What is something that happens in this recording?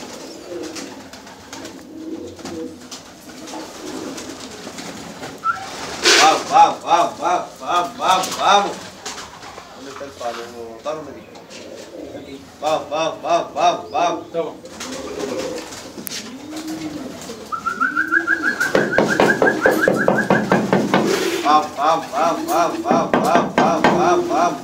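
Pigeons coo softly and steadily close by.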